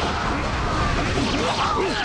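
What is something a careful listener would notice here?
Explosions boom amid the fighting.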